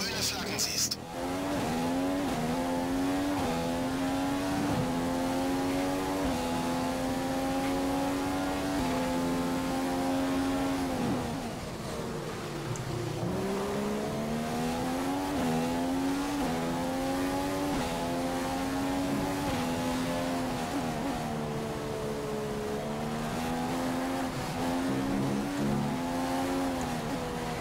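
A racing car engine screams, rising through the gears and dropping when braking.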